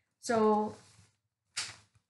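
Paper rustles as a booklet is handled.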